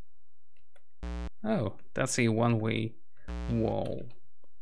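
A computer game gives short, low buzzing beeps.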